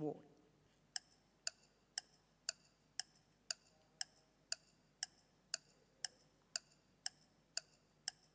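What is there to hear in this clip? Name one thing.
A countdown timer ticks steadily, about twice a second.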